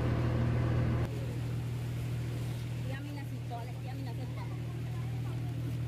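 A boat engine idles with a low, steady hum.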